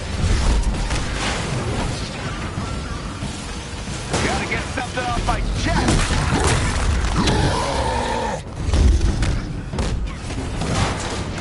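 Low booming rumble of explosions fills the air.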